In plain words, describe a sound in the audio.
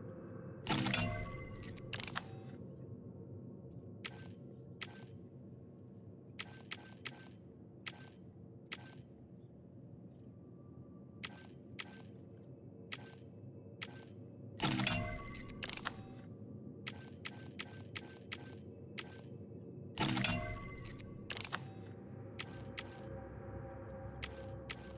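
Short interface clicks tick as menu options change.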